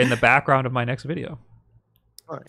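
A man laughs, heard through a close microphone over an online call.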